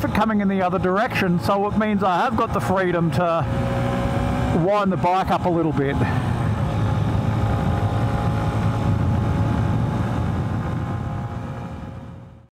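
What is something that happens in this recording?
A motorcycle engine hums steadily on the move.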